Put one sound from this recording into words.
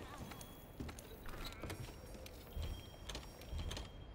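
Short soft menu clicks tick now and then.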